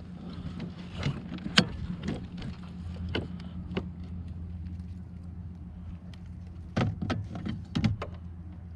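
Fishing gear knocks and clicks against a kayak.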